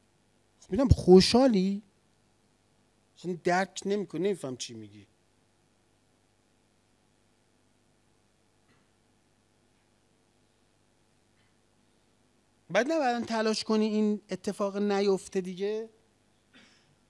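A middle-aged man speaks into a microphone with emphasis, pausing between phrases.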